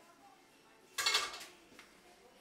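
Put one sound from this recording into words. A metal pan clanks onto a stove.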